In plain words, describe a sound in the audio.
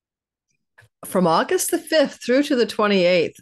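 A woman speaks warmly and with animation into a close microphone.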